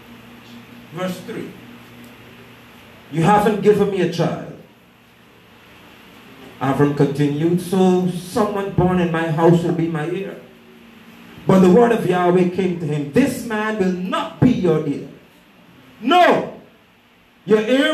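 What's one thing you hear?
A man speaks into a microphone in bursts, heard through a loudspeaker in a room.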